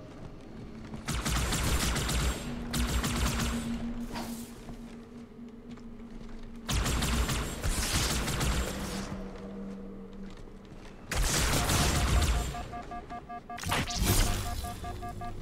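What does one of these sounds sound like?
Energy weapons fire in loud bursts.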